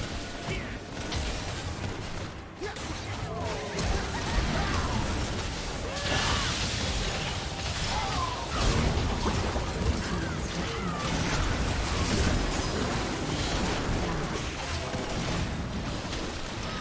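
Magic spell blasts and impacts crackle and boom in a fast battle.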